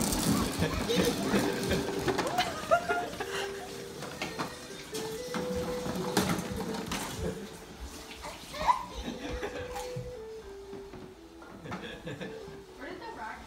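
A toy ride-on plays a beeping electronic tune.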